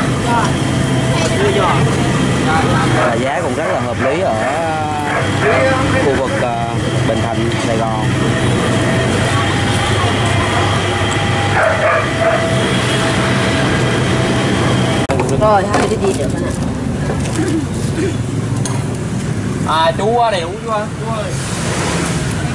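Men and women chatter nearby outdoors.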